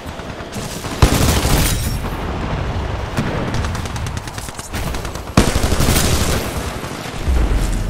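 Gunfire bursts loudly in rapid shots, with sharp blasts.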